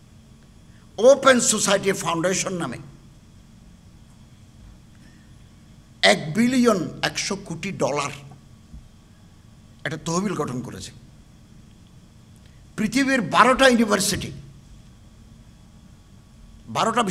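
An elderly man speaks forcefully into a microphone through loudspeakers, in bursts with pauses.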